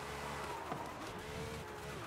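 Tyres skid on gravel.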